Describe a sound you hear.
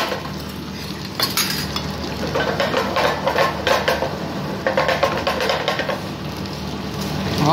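Onions sizzle and crackle in a hot pan.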